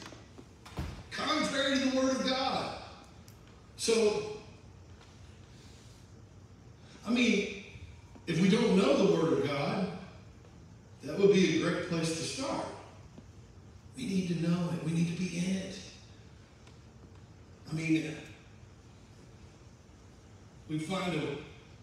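A man speaks into a microphone over a loudspeaker, in short, emphatic phrases with pauses.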